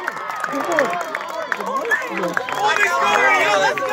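Young spectators clap their hands.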